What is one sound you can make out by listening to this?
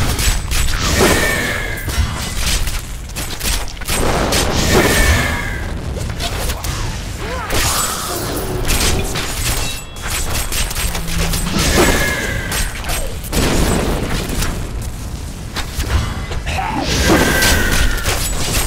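Fiery spells burst and crackle in quick succession.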